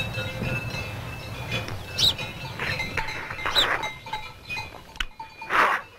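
A man slurps raw egg from a shell.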